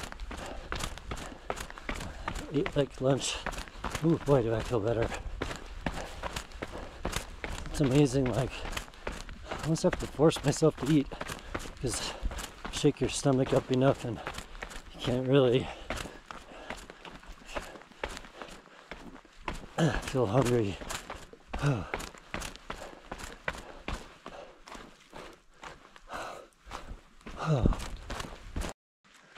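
Footsteps crunch on a rocky trail.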